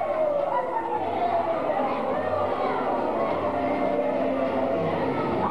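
A crowd of men and women chatters all around in a large echoing hall.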